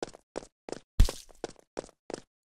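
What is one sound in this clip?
A wet splat bursts loudly.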